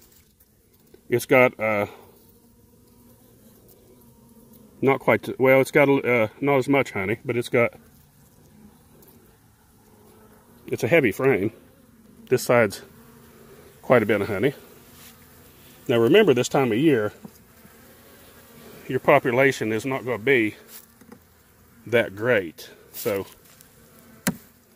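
Bees buzz softly close by.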